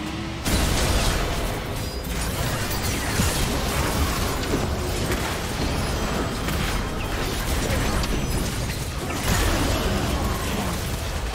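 Short sharp hits and blasts land rapidly.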